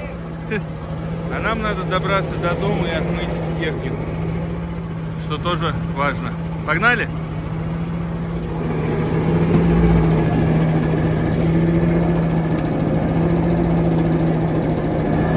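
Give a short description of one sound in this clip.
A small vehicle engine hums steadily, growing louder as it drives off.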